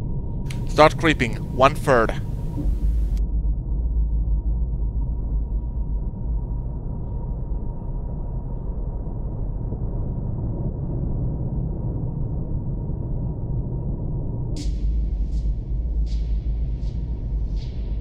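A submarine's machinery rumbles low and steady underwater.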